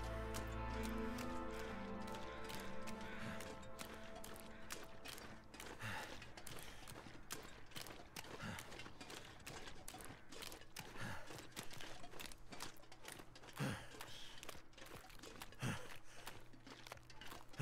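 Footsteps crunch steadily on ice.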